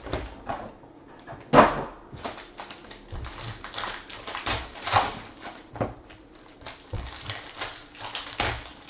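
Foil card packs crinkle as hands handle them.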